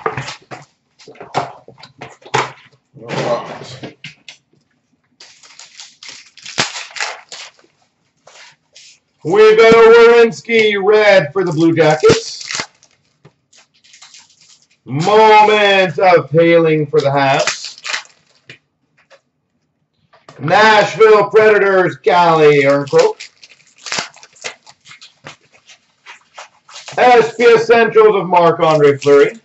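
Card packs rustle and tap as they are handled.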